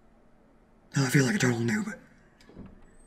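A wooden door creaks slowly open.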